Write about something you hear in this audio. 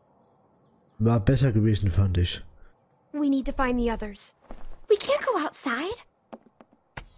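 A young girl speaks softly.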